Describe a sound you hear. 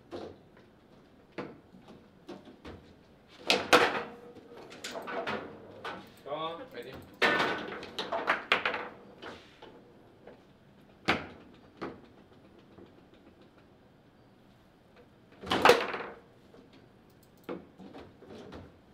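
A ball knocks and rattles against rods and walls of a table football game.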